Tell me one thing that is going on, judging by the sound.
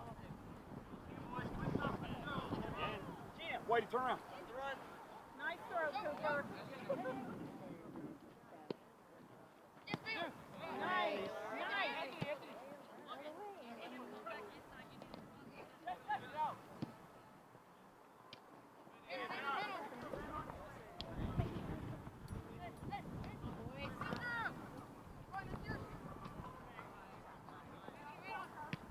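Teenage boys shout to each other across an open field outdoors.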